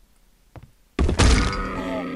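An explosion bursts with a loud roar.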